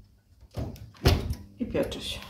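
An oven door thuds shut.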